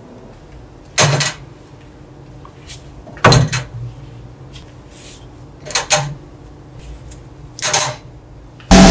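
Small metal parts clink into a wire mesh basket.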